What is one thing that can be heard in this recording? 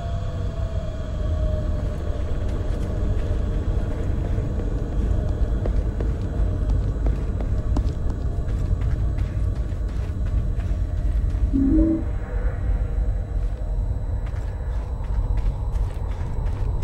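Footsteps crunch steadily on gravel and hard ground.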